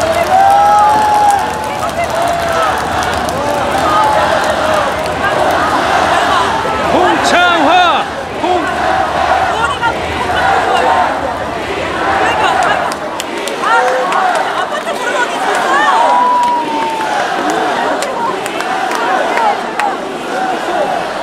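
A large crowd cheers and chatters all around.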